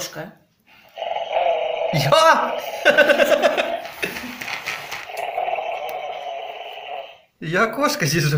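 A toy dog plays a tinny electronic tune through a small speaker.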